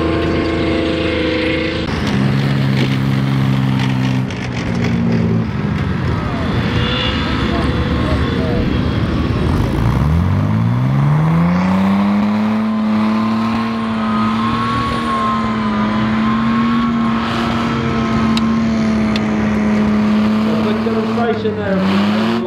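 Tracked armoured vehicles roar loudly as they drive past close by.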